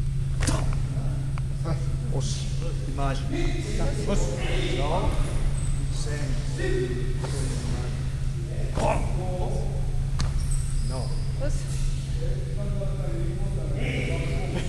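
A middle-aged man speaks calmly and explains, close by, in a large echoing hall.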